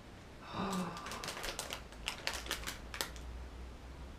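Plastic packaging crinkles and rustles in a man's hands.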